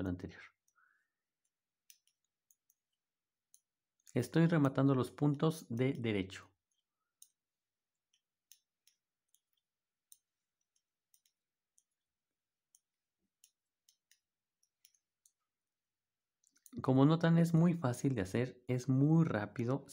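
Knitting needles click and tick softly.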